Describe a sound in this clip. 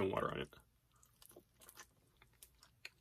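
A young man bites and chews crispy food.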